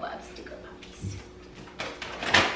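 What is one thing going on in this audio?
A dog's claws tap on a hard floor.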